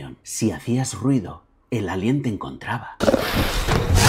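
A middle-aged man speaks with animation close to a microphone.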